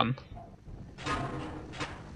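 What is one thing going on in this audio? A knife swishes through the air.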